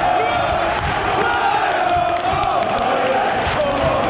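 Fans clap their hands in rhythm.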